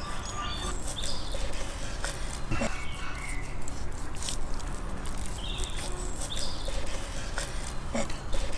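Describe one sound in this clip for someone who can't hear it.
A knife slices through raw meat on a wooden board.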